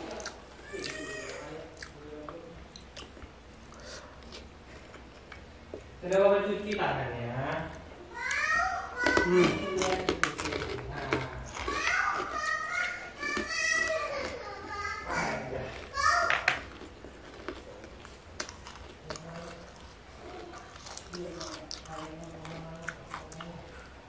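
Fingers squish and scrape through rice on a plate.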